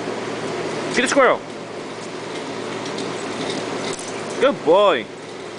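A young pit bull yelps excitedly.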